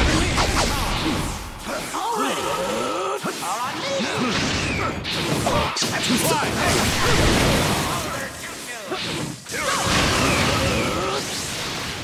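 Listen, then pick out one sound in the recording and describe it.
Crackling energy bursts and whooshes loudly.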